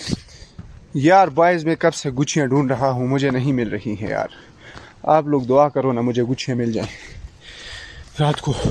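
A young man talks in a low voice close by.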